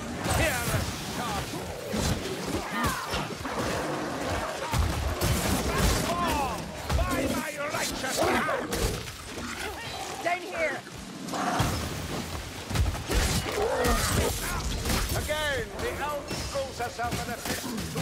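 Blades slash and strike against enemies in quick blows.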